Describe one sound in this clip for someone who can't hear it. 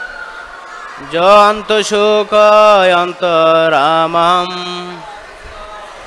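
A man chants in a sustained, melodic voice through a microphone.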